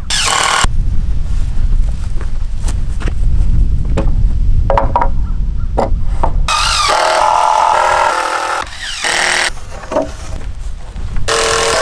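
Wooden boards knock and clatter together.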